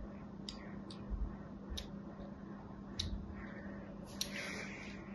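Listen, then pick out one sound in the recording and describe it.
A small knife scrapes and carves a soft bar of soap with crisp little clicks.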